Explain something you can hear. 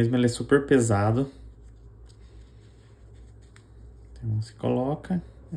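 Small plastic parts click together between fingers.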